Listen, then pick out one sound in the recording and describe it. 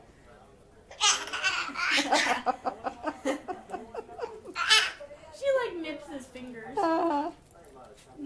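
A baby giggles and shrieks with delight close by.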